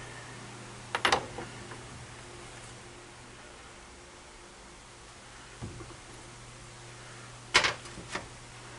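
A metal tool clicks and knocks against a lathe.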